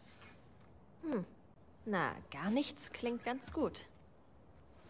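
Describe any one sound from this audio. A second young woman answers with a hum and a soft remark.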